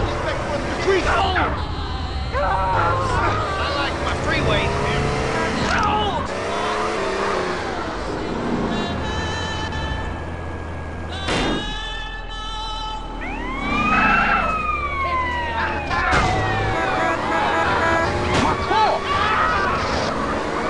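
A car engine revs and roars as the car drives off.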